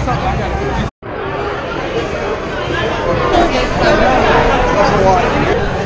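A crowd of men and women chatters loudly in a busy, echoing room.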